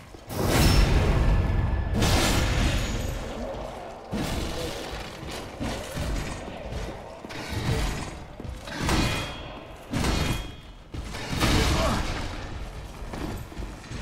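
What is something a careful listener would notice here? Swords clash and strike armour in a fight.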